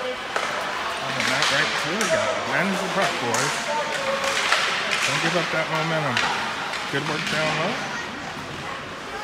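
Spectators talk nearby in a crowd.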